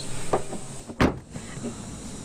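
A car boot slams shut.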